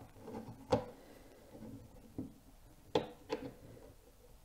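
A plastic cover clicks into place on a circuit board.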